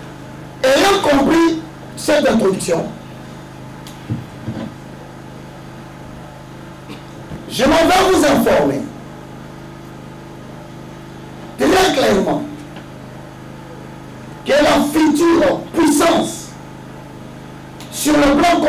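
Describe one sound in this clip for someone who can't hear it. A man speaks forcefully into a microphone in short bursts, with long pauses.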